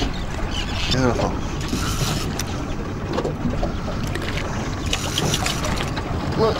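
A fish thrashes and splashes at the water's surface.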